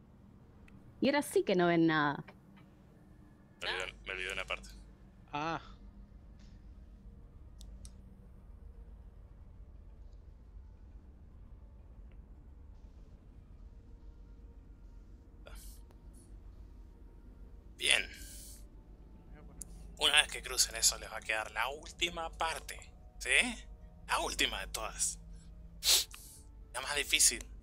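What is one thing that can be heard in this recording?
A woman talks and laughs over an online call.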